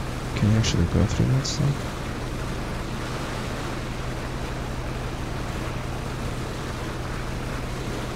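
Water rushes and splashes against a speeding boat's hull.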